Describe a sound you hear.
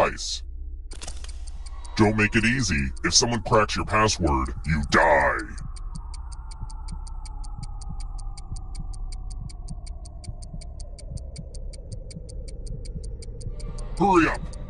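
A clock ticks quickly and steadily.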